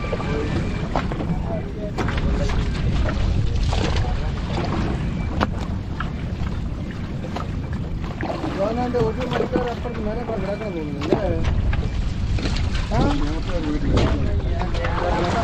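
Outboard motors rumble steadily.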